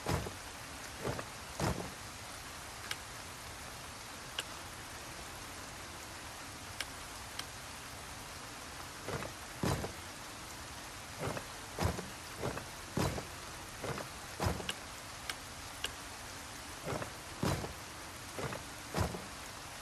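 Wooden puzzle pieces click and clunk as they turn.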